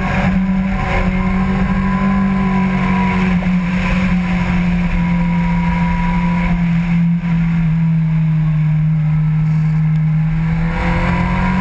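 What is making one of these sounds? A motorcycle engine drones steadily through a long bend.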